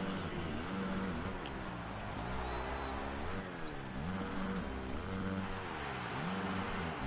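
A dirt bike engine revs up and down loudly, rising and falling as it shifts gears.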